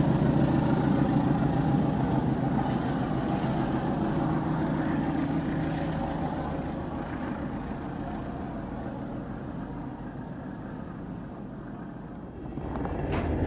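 A train rumbles along the tracks and slowly fades into the distance.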